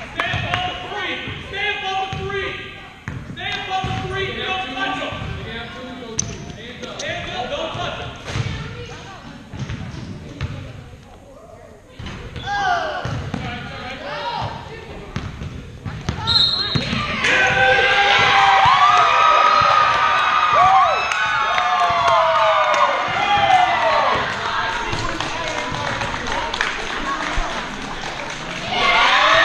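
Spectators talk and call out nearby in a large echoing gym.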